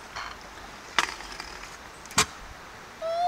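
A scooter clatters as it hits the ground.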